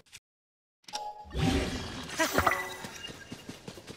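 A magical whoosh swirls up loudly.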